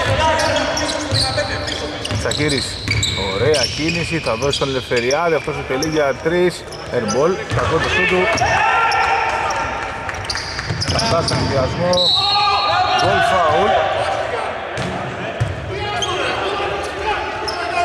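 Male players shout to each other across the court.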